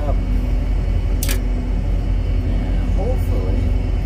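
Crimping pliers click shut on a wire connector.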